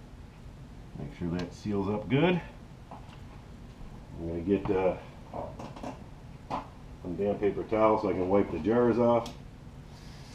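A man talks a few steps away.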